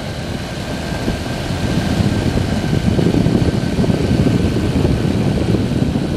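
Wind rushes and buffets loudly.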